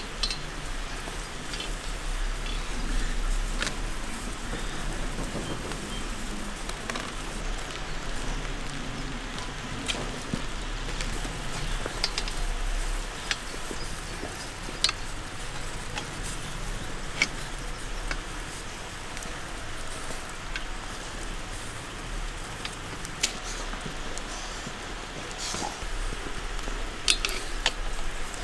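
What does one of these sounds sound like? A man talks at close range.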